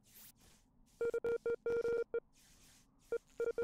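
Short electronic beeps sound in quick bursts.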